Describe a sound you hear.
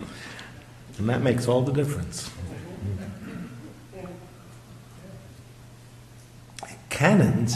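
An elderly man speaks haltingly and with emotion into a microphone.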